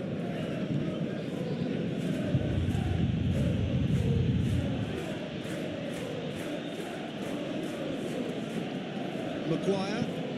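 A stadium crowd roars and chants steadily in the distance.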